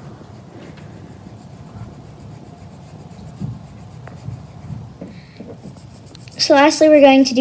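A coloured pencil scratches softly across paper.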